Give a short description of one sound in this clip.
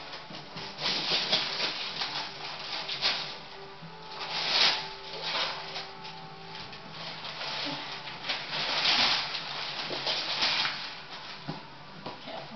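Wrapping paper rustles and tears as a present is opened.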